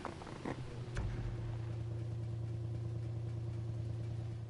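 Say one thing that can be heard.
A car engine idles with a low rumble.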